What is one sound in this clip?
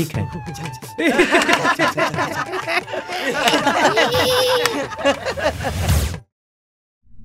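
A group of young people laugh loudly together.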